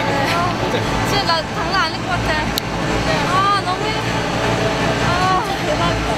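A young woman answers close by.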